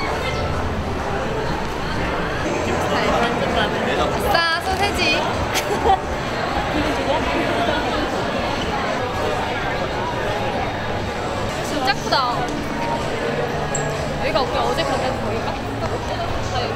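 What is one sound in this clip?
A crowd murmurs in a busy indoor space.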